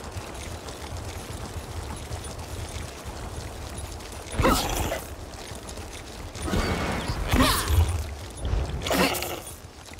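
Magic spells burst with loud whooshing blasts.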